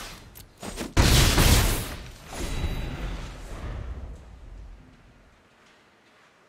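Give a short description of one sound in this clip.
Creatures in a card game attack with a loud whooshing crash that slowly fades.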